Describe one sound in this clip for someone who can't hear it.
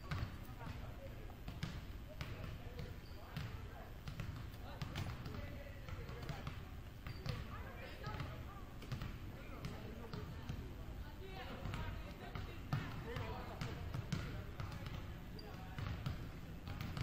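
Basketballs bounce on a wooden floor in a large echoing hall.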